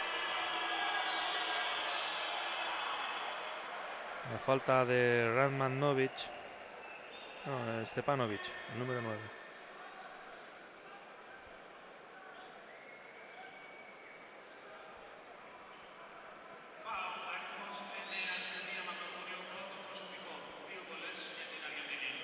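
A large crowd murmurs and cheers in a big echoing arena.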